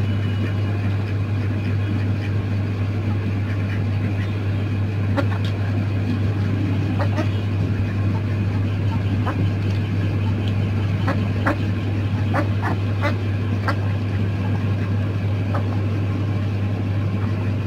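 Chickens and ducks peck at food with quick tapping pecks.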